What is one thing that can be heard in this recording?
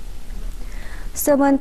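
A woman reads out the news into a microphone.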